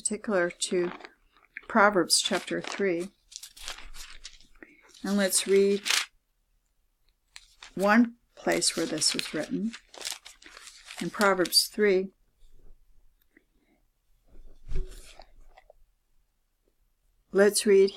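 A middle-aged woman reads aloud calmly close to a microphone.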